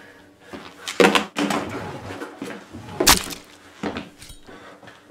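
A man cries out in alarm close by.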